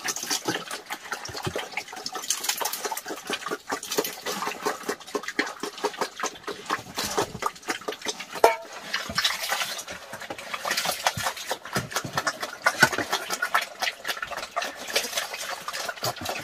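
Pigs chomp and slurp their feed noisily.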